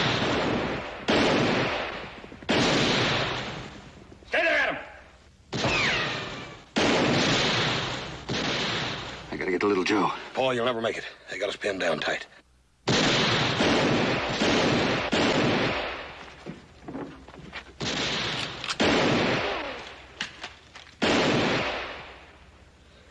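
Gunshots ring out again and again, echoing off rocks.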